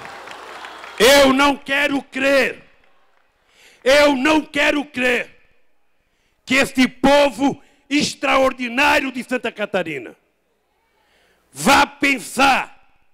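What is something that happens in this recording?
An elderly man speaks forcefully into a microphone over loudspeakers.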